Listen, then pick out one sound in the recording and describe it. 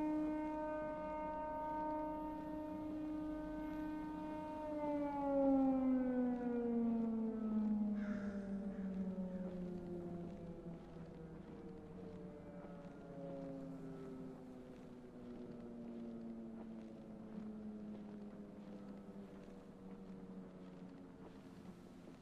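Footsteps rustle through dry leaves and undergrowth.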